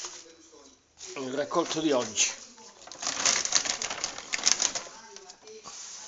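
A plastic bag rustles and crinkles as it is handled up close.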